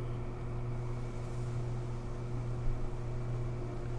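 Sea waves wash against the shore far below.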